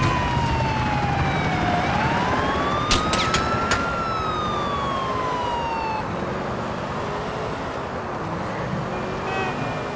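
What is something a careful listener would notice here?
A car engine roars as it speeds up.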